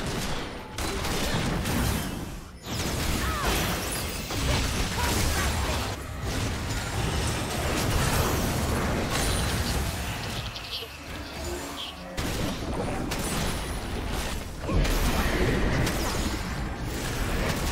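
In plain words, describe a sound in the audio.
Video game weapons clash and strike.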